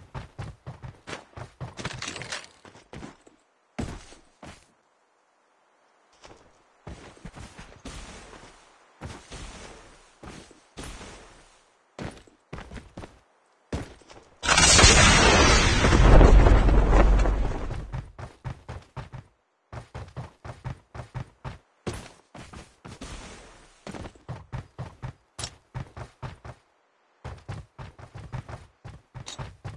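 Quick footsteps thud on wooden floors and grass.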